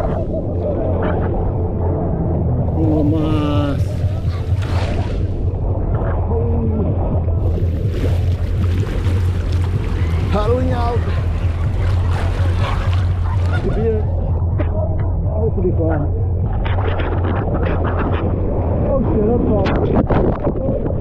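A man talks with animation close to the microphone.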